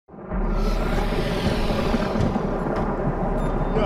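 A portal hums and crackles with energy.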